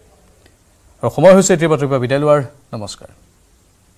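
A man speaks calmly and clearly into a microphone, like a news presenter.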